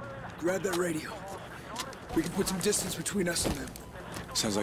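A man speaks urgently, close by.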